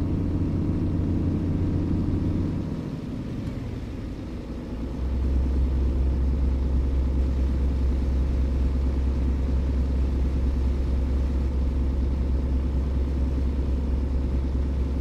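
A diesel truck engine drones while cruising at highway speed.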